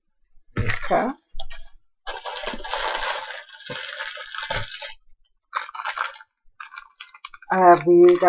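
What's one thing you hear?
A plastic packet crinkles in hands.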